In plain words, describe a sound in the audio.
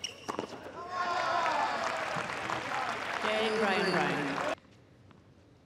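A crowd claps and cheers in a large arena.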